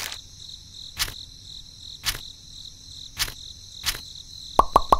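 Small plastic toys tap softly into a woven basket.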